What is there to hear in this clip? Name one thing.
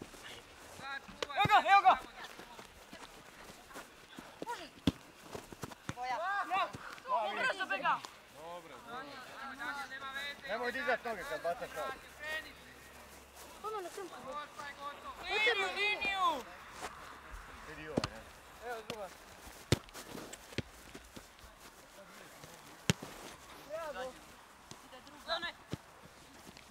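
Male players shout and call to each other across an open pitch outdoors.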